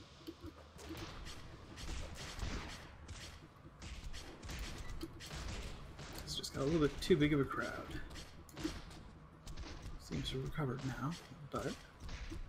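Weapons strike and clash in a game fight.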